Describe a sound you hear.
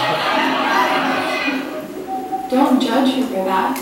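An accordion plays nearby.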